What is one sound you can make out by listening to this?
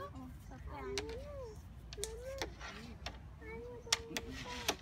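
Wooden game pieces click sharply against each other on a board.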